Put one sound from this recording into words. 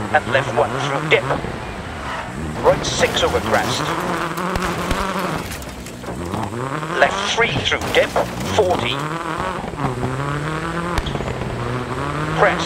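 A rally car engine revs hard, rising and falling through the gears.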